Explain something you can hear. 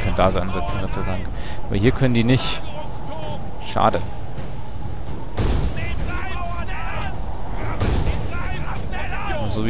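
Wooden siege towers creak and rumble as they roll forward.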